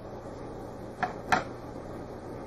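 Plastic tweezers tap lightly against a plastic tray.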